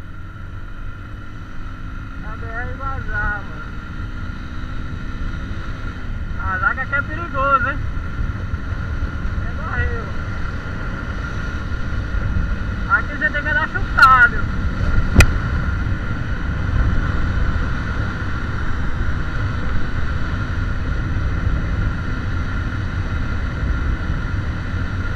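Road noise rumbles steadily inside a moving car as it speeds up.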